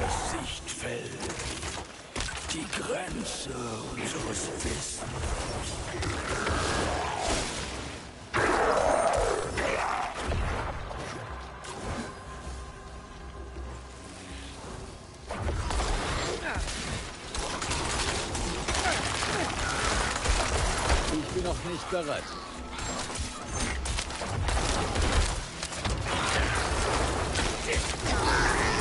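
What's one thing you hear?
Low rumbling booms thud beneath the fight.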